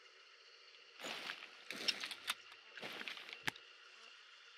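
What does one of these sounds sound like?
A rifle is handled with sharp metallic clicks.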